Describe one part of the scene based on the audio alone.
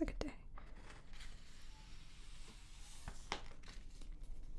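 A magazine page rustles as it is turned.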